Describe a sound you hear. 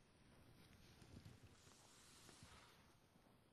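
Book pages rustle softly as they are turned.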